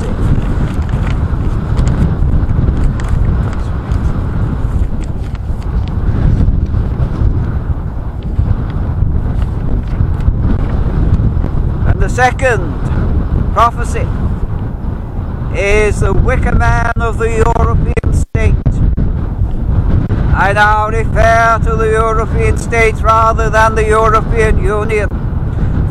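Wind blows hard across a microphone outdoors.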